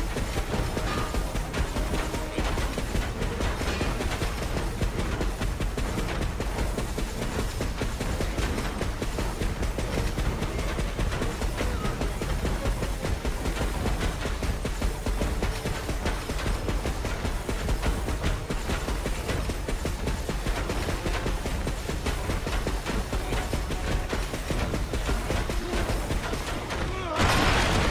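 Heavy metal footsteps clank and thud steadily.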